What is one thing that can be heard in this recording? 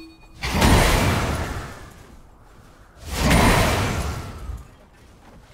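Loud whooshing bursts of game spell effects swell and fade twice.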